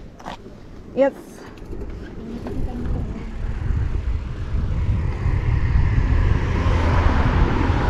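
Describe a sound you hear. Bicycle tyres roll and hum along pavement.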